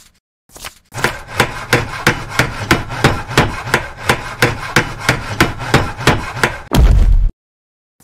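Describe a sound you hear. A hammer taps rapidly and steadily on wood.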